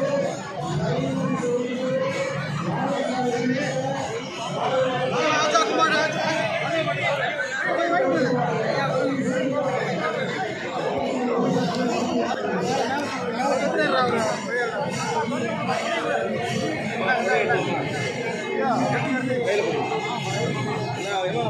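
A crowd of men and women talk and call out all around, close by.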